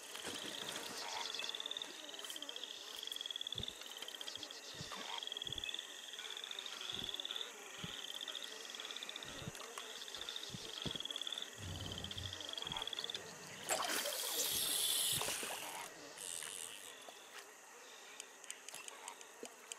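A fishing reel clicks as line is wound in.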